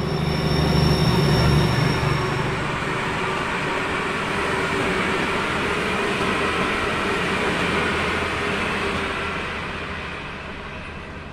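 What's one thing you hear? A train rumbles along the rails and fades as it moves away.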